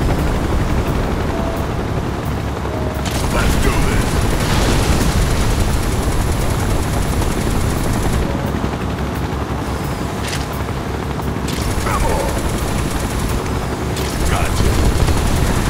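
Helicopter rotors thump overhead.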